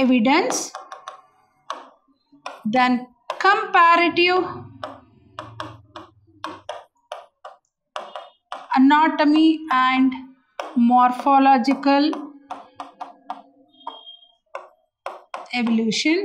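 A woman explains calmly into a close microphone.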